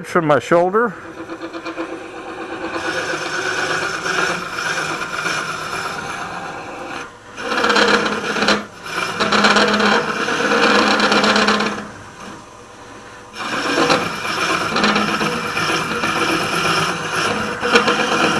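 A gouge scrapes and hisses against spinning wood.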